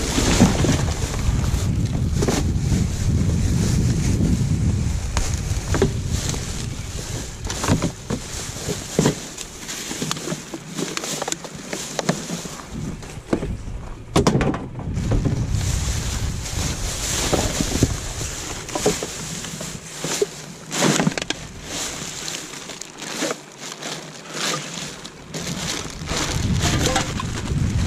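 Plastic rubbish bags rustle and crinkle as gloved hands rummage through a bin.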